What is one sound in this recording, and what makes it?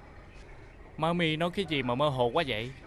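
A man speaks loudly and with emotion nearby.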